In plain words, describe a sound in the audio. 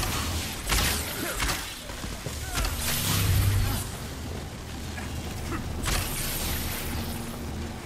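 Electric bolts crackle and fizz.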